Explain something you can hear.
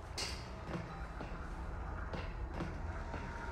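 Footsteps clank on a metal grating floor.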